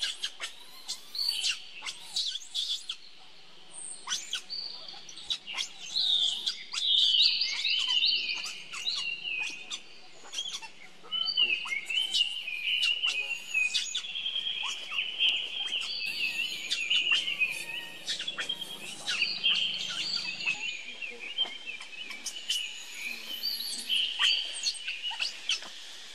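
A baby monkey squeals and chirps in high, shrill cries close by.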